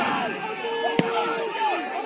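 A football is kicked hard.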